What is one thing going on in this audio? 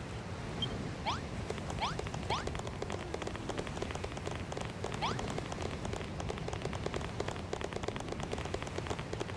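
Soft footsteps patter quickly.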